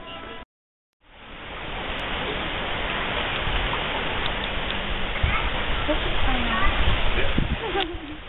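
Water pours and splashes steadily into a pool.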